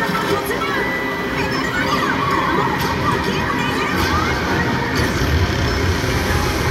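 Loud arcade racing game music and sound effects play through loudspeakers.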